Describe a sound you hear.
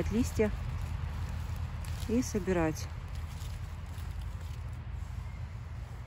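A hand rustles through dry fallen leaves.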